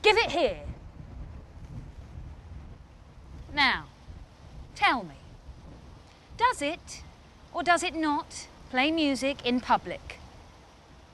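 A young woman speaks forcefully and with animation, close to a microphone.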